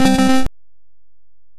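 A short chiptune video game jingle plays.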